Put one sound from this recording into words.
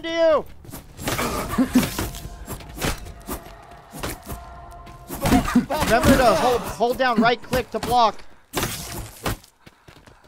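A club strikes a body with heavy thuds.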